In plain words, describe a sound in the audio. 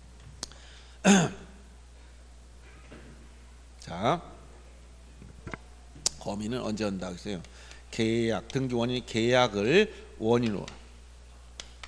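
A middle-aged man speaks into a microphone in bursts, with animation.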